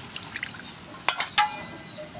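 Hands splash and swish in water in a metal basin.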